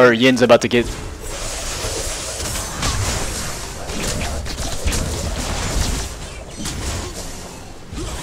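Magic blasts and weapon hits crackle and thump in a busy fight.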